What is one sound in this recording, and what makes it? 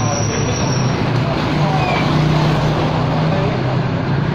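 A motorcycle engine hums along a street and draws nearer.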